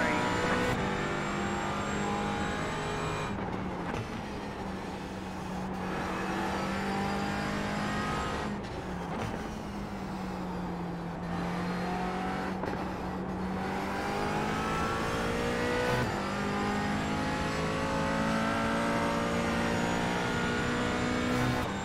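A racing car engine roars steadily, its pitch rising and falling as the car speeds up and slows for corners.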